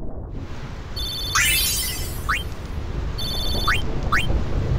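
Menu blips chime in quick succession.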